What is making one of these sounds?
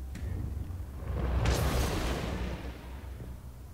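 Sparks burst and crackle with a loud rushing whoosh.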